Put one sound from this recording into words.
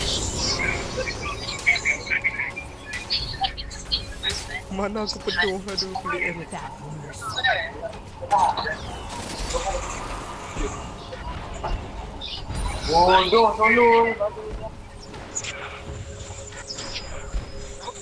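Game spells crackle and zap in a fight.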